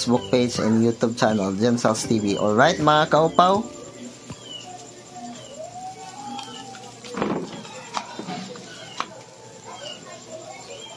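Fish sizzle softly over glowing charcoal.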